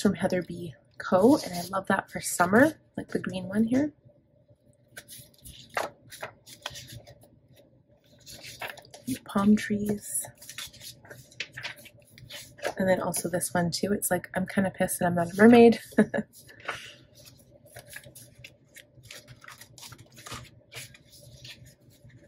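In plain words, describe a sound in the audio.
Paper cards rustle and flap as they are shuffled by hand.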